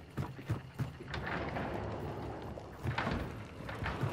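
A wooden gate creaks open.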